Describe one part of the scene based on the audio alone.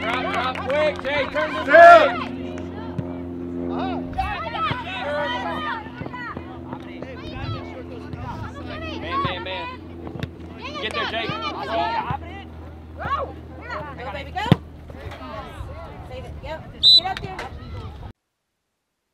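Children shout and call to each other across an open field.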